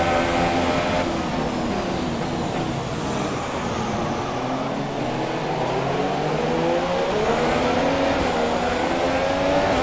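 A racing car engine drones loudly, its pitch falling as the car slows and rising as it speeds up again.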